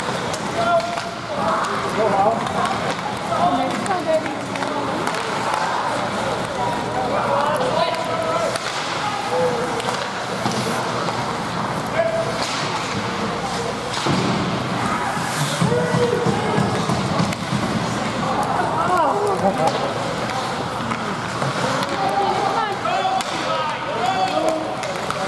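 Spectators chatter and call out throughout.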